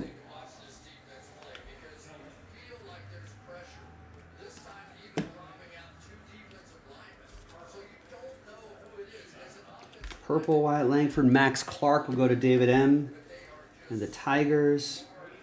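Trading cards slide and flick against each other as they are shuffled.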